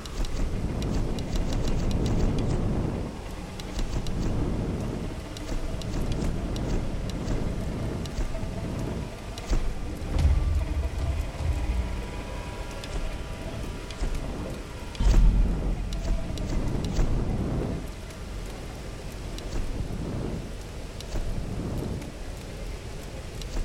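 Menu selection clicks sound sharply as options change.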